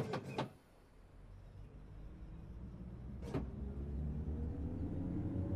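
A train engine rumbles and rises in pitch as the train pulls away.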